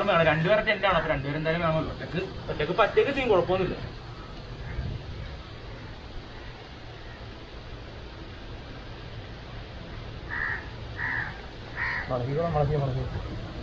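A young man talks nearby.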